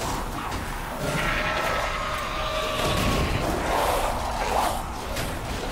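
A creature snarls and shrieks.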